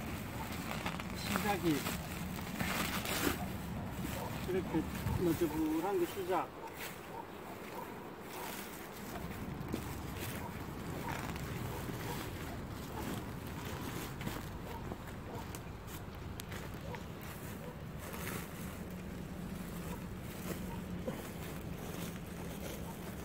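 Thick plastic sheeting rustles and flaps as it is handled.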